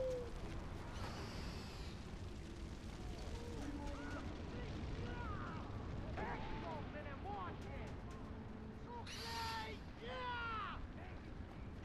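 A large bird of prey screeches loudly.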